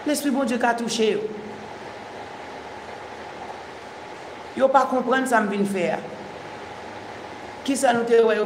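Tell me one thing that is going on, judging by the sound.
A woman speaks calmly and clearly, close to a microphone, with pauses between phrases.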